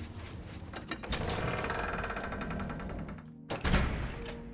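A heavy door creaks and swings open.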